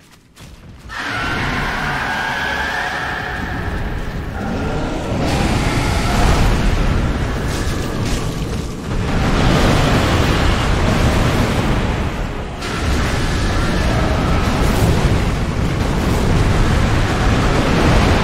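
A huge creature roars and rumbles loudly.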